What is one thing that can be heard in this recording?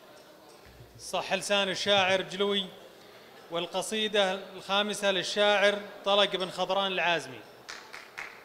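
A man chants loudly into a microphone through loudspeakers in a large echoing hall.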